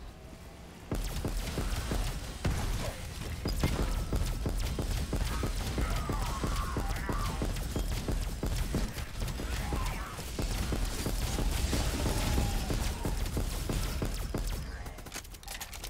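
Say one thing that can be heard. A heavy gun fires in rapid bursts with loud crackling blasts.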